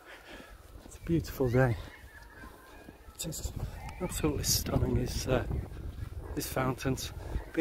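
A middle-aged man talks calmly and close to the microphone.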